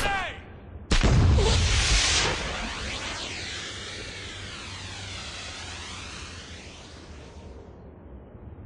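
Smoke hisses out of a grenade in a steady rush, then stops.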